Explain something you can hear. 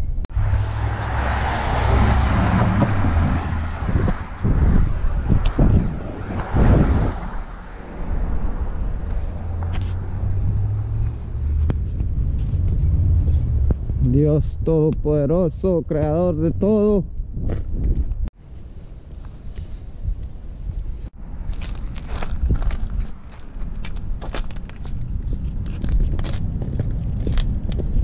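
Tyres roll and rumble over a paved road.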